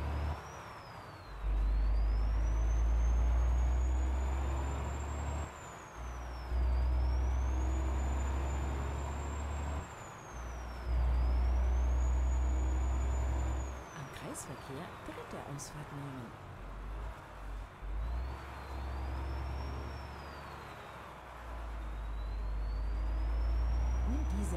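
A truck engine drones and revs up through the gears, dropping in pitch at each shift.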